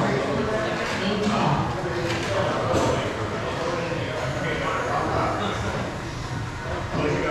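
Several people chatter in a large echoing hall.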